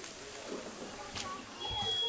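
Patties sizzle on a hot grill.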